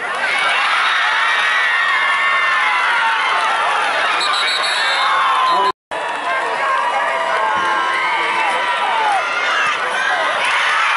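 A large crowd cheers and shouts loudly in an outdoor stadium.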